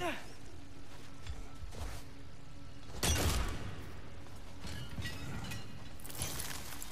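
Heavy footsteps thud on stone.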